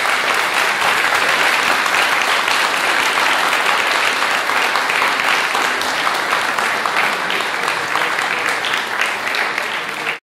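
A cello plays bowed notes.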